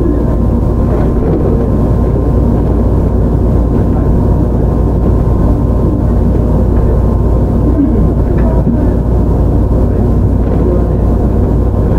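An electric train rumbles along the tracks.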